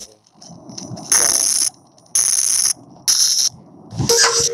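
Short electric zaps crackle as wires snap into place.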